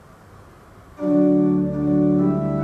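An organ begins to play loud sustained chords.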